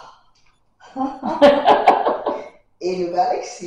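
An older woman laughs.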